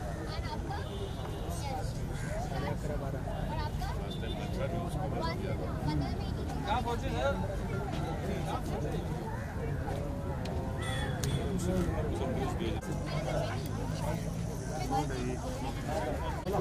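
A crowd chatters outdoors with many overlapping voices.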